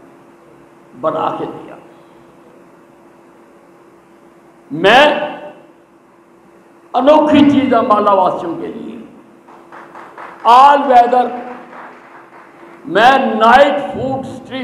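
An elderly man shouts a speech into a microphone in bursts, over a loudspeaker in a large echoing hall.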